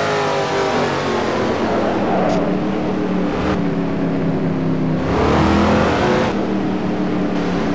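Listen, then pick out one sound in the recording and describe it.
Several race car engines roar loudly at high revs.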